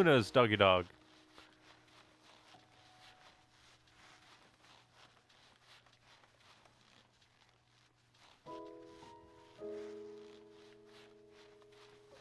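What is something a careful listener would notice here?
Running footsteps crunch on snow.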